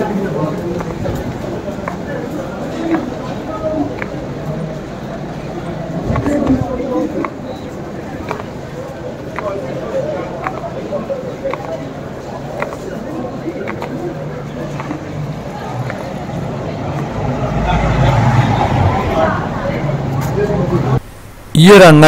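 A crowd murmurs in a busy street outdoors.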